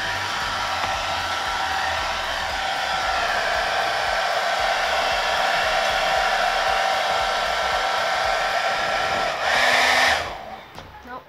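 A hair dryer blows with a loud steady whir, then switches off.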